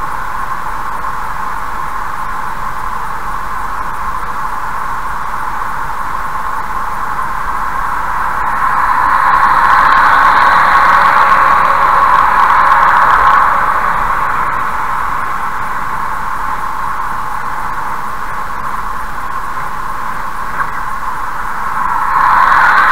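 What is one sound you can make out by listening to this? Tyres hum steadily on a highway from inside a moving car.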